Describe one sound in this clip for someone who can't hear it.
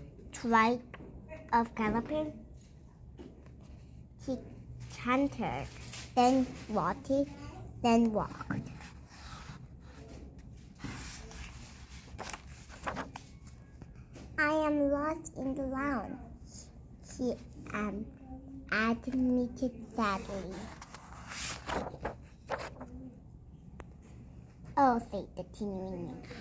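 A woman reads aloud close by, with animation.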